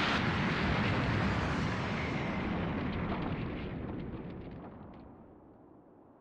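A deep rumbling roar of an explosion slowly fades.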